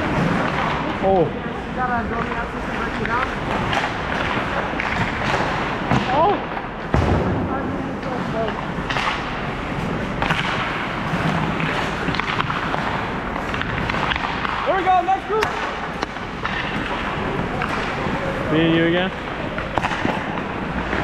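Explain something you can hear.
Young players shout and call out in a large echoing rink.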